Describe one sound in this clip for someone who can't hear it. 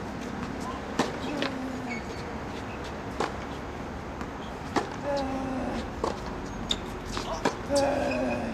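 Tennis balls are struck with sharp pops, one rally shot after another, outdoors.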